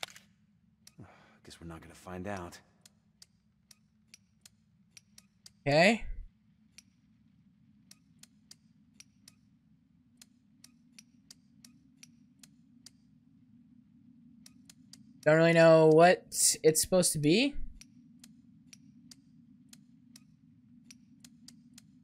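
Small metal switches click on a padlock.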